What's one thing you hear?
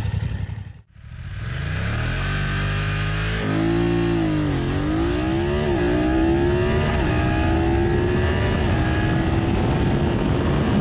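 A motorcycle engine revs hard and climbs in pitch, dropping briefly at each gear change.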